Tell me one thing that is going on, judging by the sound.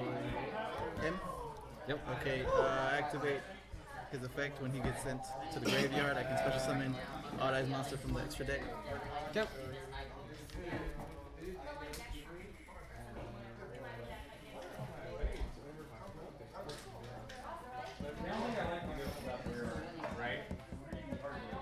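Young men talk casually close by.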